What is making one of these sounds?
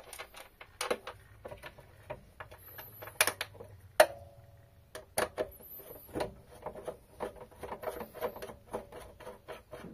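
A screwdriver scrapes and clicks as it turns a screw.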